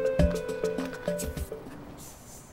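Short electronic chimes ring out in a quick run.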